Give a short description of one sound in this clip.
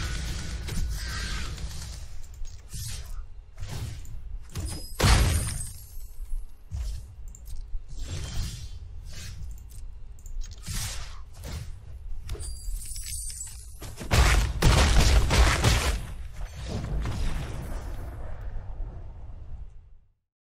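Game sound effects burst and chime loudly.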